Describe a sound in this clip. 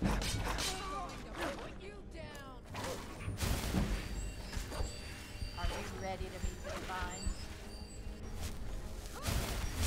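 A woman shouts threateningly.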